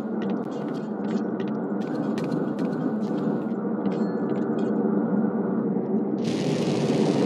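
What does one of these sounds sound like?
A jetpack roars steadily.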